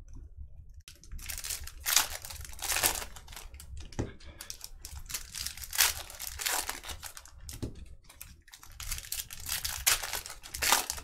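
Foil card packs crinkle and tear as they are opened.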